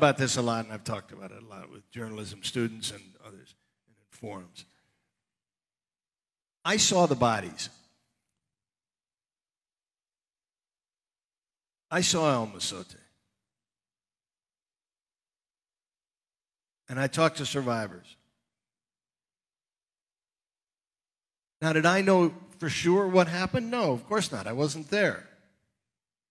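An older man speaks calmly through a headset microphone, in bursts with long pauses.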